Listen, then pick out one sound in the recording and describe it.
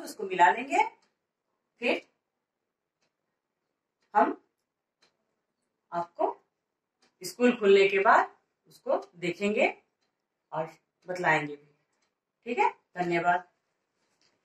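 A woman speaks calmly and clearly close by, in short phrases with pauses.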